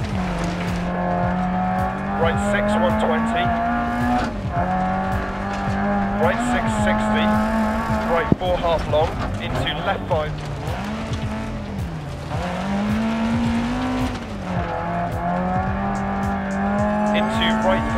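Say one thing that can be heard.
A rally car engine roars and revs up and down.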